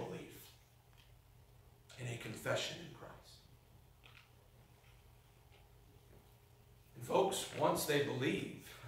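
A young man speaks calmly into a microphone in a reverberant hall, with pauses.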